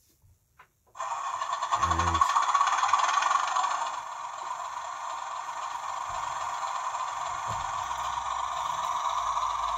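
A model diesel locomotive's sound decoder plays a running engine through a small speaker.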